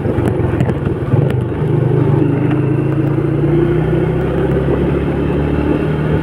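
Wind rushes past as the scooter rides.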